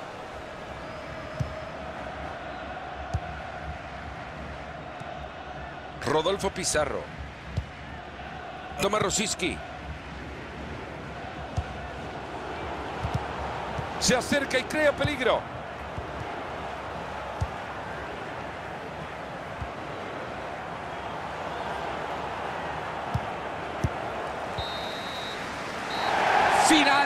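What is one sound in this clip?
A large stadium crowd murmurs and cheers steadily, swelling loudly near the end.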